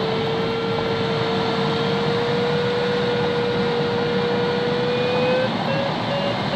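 A flight instrument sounds a steady electronic tone that slowly rises in pitch.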